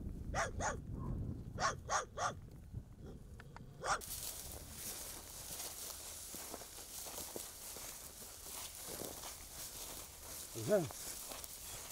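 Cattle tear at grass while grazing.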